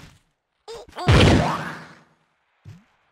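A loud magic blast bursts and fades.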